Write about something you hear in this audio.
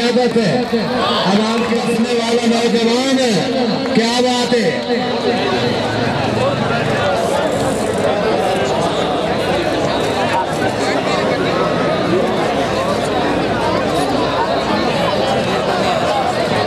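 A large outdoor crowd chatters and murmurs loudly.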